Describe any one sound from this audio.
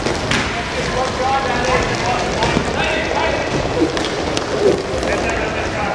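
Skate wheels roll and rumble on a hard floor.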